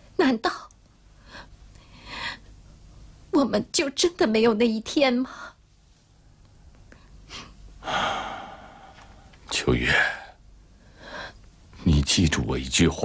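A young woman speaks tearfully and pleadingly, close by.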